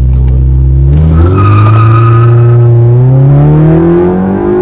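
A car engine roars and climbs in pitch as the car speeds up hard.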